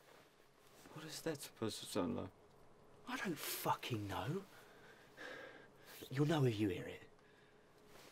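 A man answers in a low, tense voice up close.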